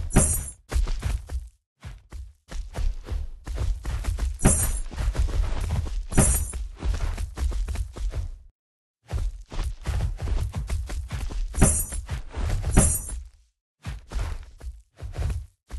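Large wings beat in rushing air.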